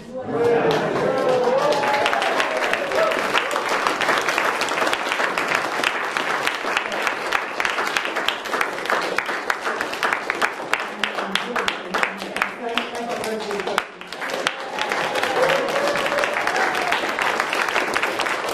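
A man speaks with animation to an audience in an echoing room.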